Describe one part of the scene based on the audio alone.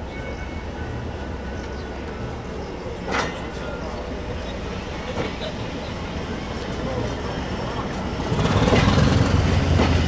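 A diesel-electric multiple unit drones as it pulls into a station.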